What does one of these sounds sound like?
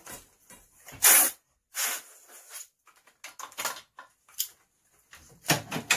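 Compressed air hisses from an air gun in short, loud bursts.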